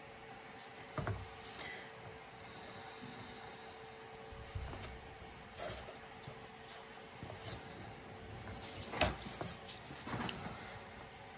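Light knocks and taps sound now and then on a hard surface.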